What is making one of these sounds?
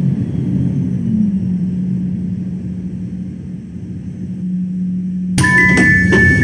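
A tram's electric motor hums as the tram slows to a stop.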